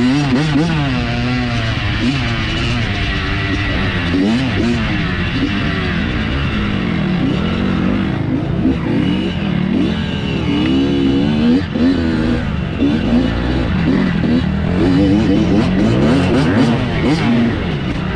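Tyres spin and scrabble over loose dirt.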